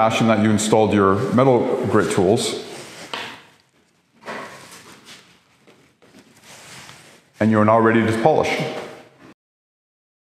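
A young man speaks calmly and clearly, close to a microphone.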